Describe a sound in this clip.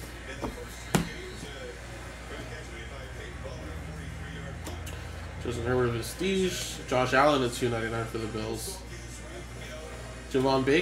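Cards shuffle and slide in a hand.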